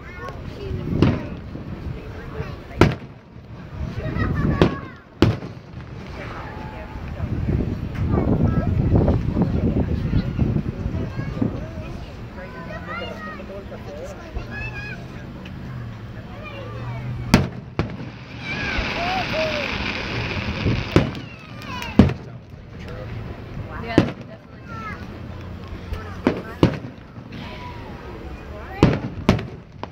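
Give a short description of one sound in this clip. Fireworks boom and bang in the distance, again and again.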